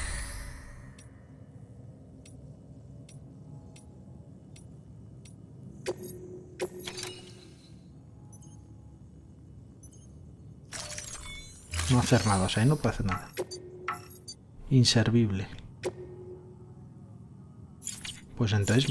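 Soft electronic ticks sound as a menu selection moves.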